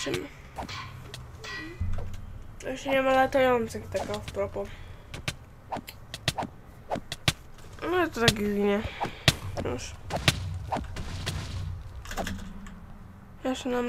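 Sharp, quick hit sounds land again and again as a sword strikes creatures.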